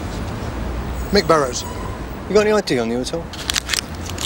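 A man answers in a firm voice outdoors.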